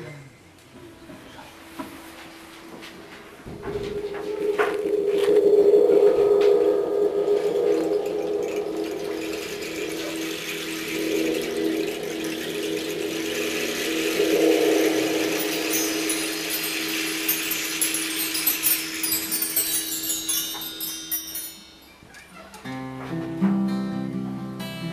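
A steel-string acoustic guitar is played.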